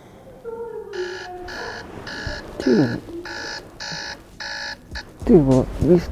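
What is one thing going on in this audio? A phone alarm beeps in quick repeated bursts.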